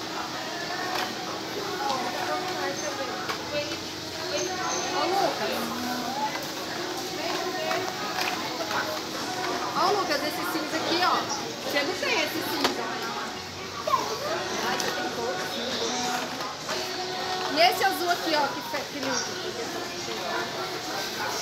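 Plastic toy packages rustle and click as a hand handles them.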